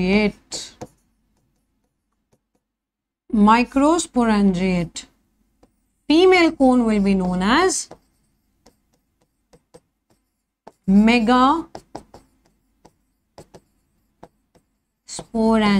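A young woman speaks calmly and clearly into a close microphone, in short bursts with pauses.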